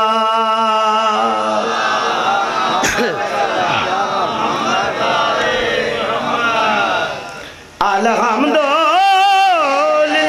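A man chants loudly and emotionally into a microphone, heard through loudspeakers.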